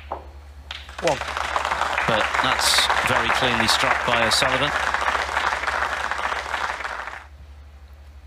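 A crowd applauds loudly and cheers, then the clapping stops.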